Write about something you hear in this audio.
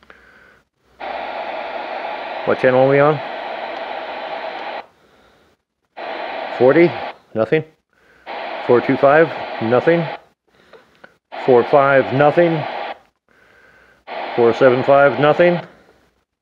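A recorded voice speaks through a small radio loudspeaker over steady hiss.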